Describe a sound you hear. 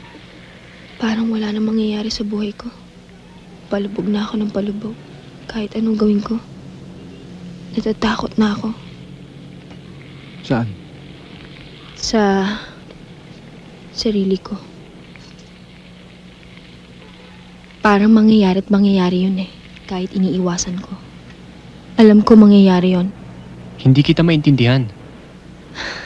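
A young man talks calmly and softly nearby.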